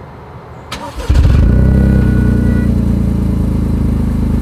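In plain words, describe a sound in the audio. A car engine roars to life and settles into a deep, steady exhaust rumble close by.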